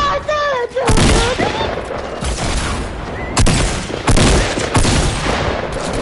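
A gun fires in short blasts.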